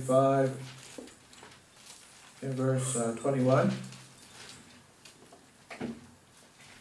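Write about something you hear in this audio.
An elderly man speaks slowly and calmly into a microphone.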